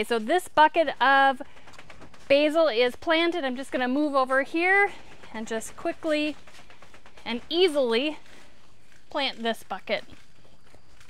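A woman talks calmly and clearly into a clip-on microphone, close by.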